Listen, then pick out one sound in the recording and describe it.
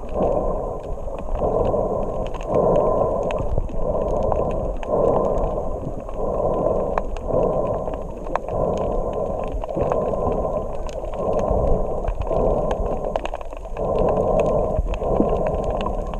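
Water sloshes and bubbles in muffled, rhythmic surges, heard from just below the surface.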